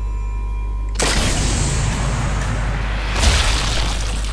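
A bullet whooshes through the air.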